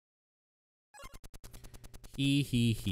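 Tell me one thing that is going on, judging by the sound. Rapid electronic beeps tick in a quick run.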